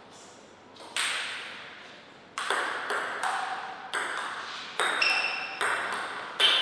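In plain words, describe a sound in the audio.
A table tennis ball clicks sharply back and forth off paddles and the table, with a short echo.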